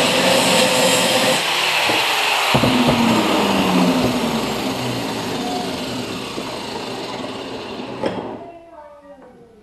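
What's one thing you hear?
A power grinder whirs loudly and then winds down.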